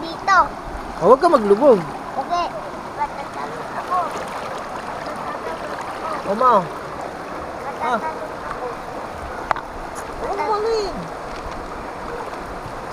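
Water rushes and churns steadily over rocks nearby.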